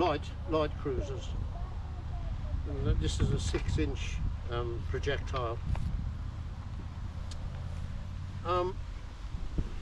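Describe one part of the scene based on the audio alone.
An elderly man speaks calmly and close by.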